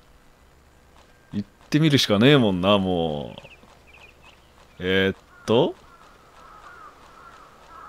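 Bare feet run quickly over packed dirt.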